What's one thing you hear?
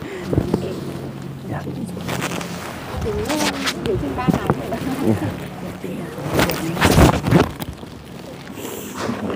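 Large fabric bags rustle as they are handed over.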